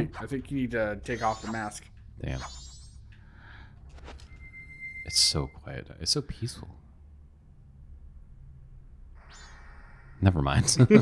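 Bright chiming game tones ring out in short runs.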